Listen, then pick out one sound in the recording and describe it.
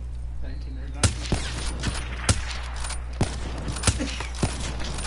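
Rifle shots fire in sharp, loud bursts.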